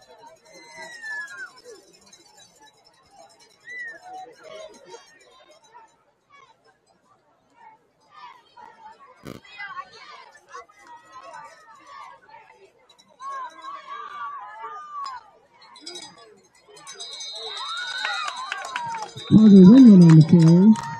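A crowd of spectators and players cheers and shouts outdoors.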